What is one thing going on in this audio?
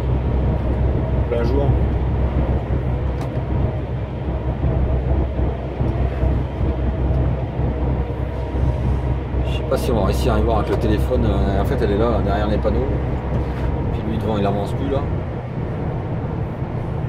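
A vehicle's engine and tyres rumble steadily on a motorway.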